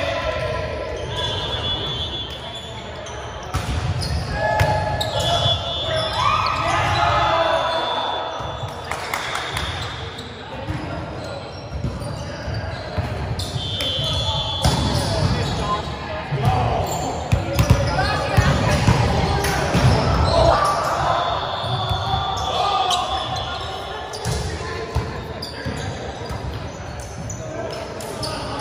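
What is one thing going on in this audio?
Young people shout and call out across a large echoing hall.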